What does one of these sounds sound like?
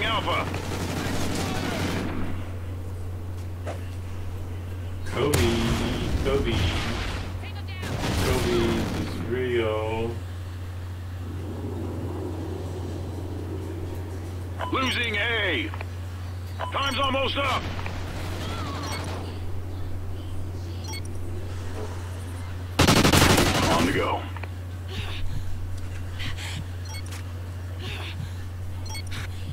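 A man talks into a microphone in bursts, with animation.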